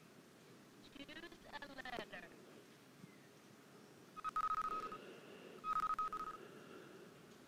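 Short electronic beeps sound now and then.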